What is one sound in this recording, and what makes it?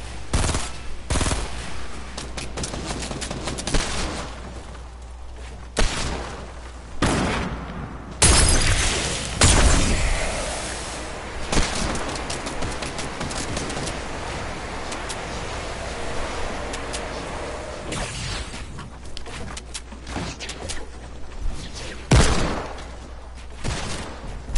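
Wooden walls and ramps are built with quick knocks.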